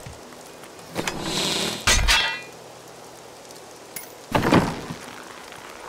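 A game character attacks with magical whooshes and bursts.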